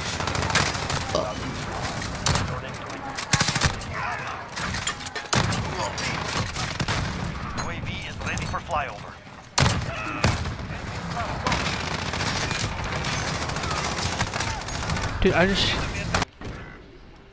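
Rifle shots crack loudly in quick bursts.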